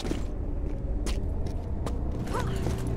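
Footsteps run on a stone floor.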